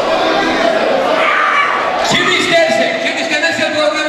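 An elderly man sings loudly into a microphone.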